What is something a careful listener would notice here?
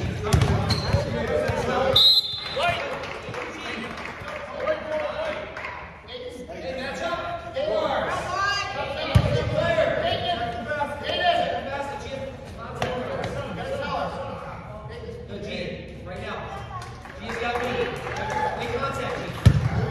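Children and adults shout and cheer in an echoing hall.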